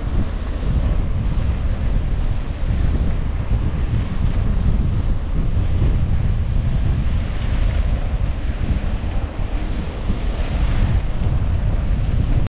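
Wind roars loudly over the microphone.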